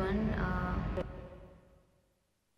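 A young woman speaks calmly and close up.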